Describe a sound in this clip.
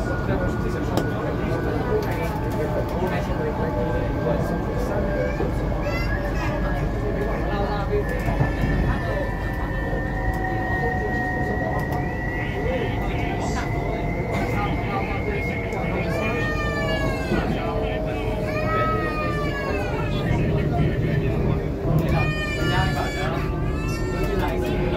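A train rumbles steadily along elevated tracks.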